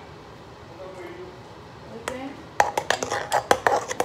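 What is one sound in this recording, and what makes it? Water pours from a plastic bottle into a bowl.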